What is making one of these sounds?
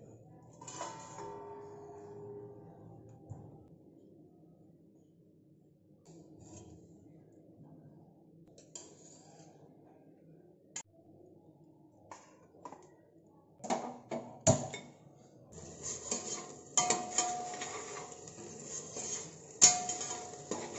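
A metal ladle scrapes and clinks against a steel pot.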